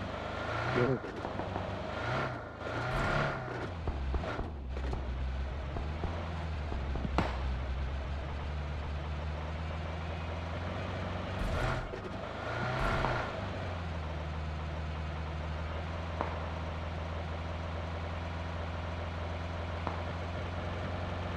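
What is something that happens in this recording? Tyres rumble over dirt and grass.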